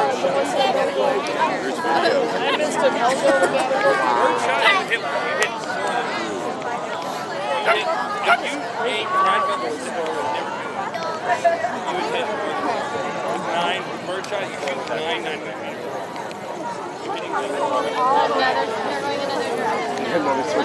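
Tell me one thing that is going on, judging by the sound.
A large flock of birds twitters and chirps constantly overhead.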